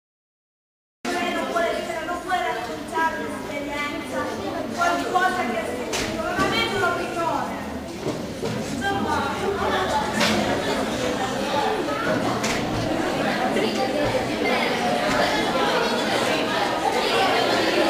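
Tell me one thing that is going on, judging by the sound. A large crowd of young people chatters in an echoing hall.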